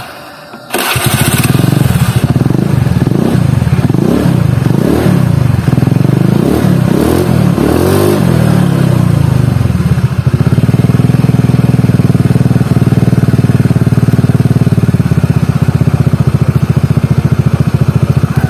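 A scooter engine starts, revs up and down several times, then runs steadily.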